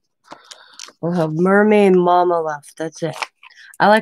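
A plastic stencil sheet rustles in hands.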